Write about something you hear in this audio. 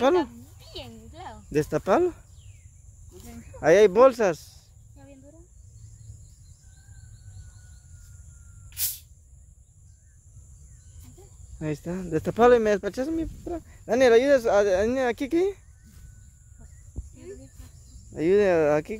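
Young boys talk with animation close by, outdoors.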